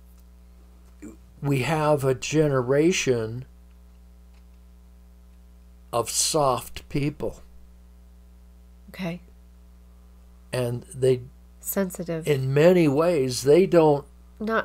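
An elderly man speaks calmly into a close microphone, pausing between phrases.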